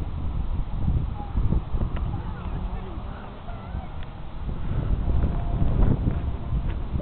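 Wind blusters against the microphone outdoors.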